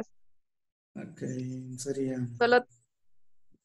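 A young woman speaks into a microphone over an online call.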